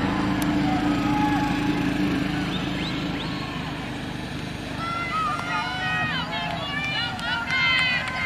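A crowd of young people shouts and cheers outdoors.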